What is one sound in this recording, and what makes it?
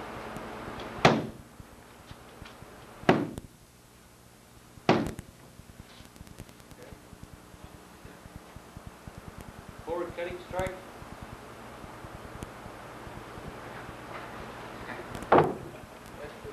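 A stick strikes a padded bag with sharp thuds.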